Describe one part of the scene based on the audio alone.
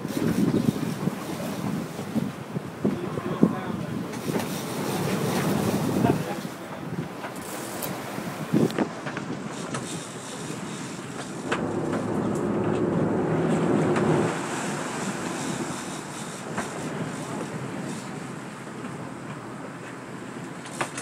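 Wind blows hard outdoors over open water.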